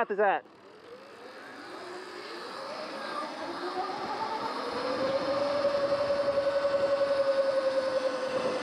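An electric motor whines and rises in pitch as a bike speeds up.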